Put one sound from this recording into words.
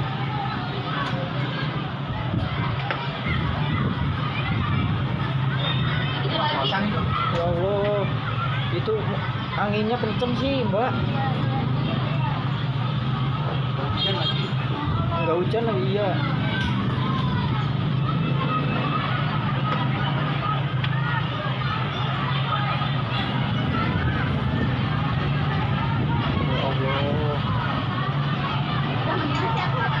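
A crowd of people talks and calls out in the distance.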